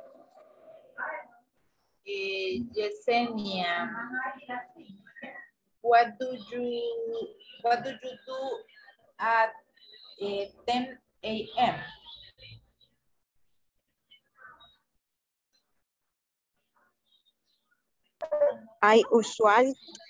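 A woman speaks with animation through a headset microphone on an online call.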